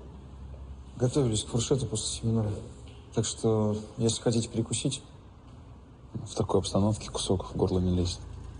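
Men talk with each other in a calm conversation.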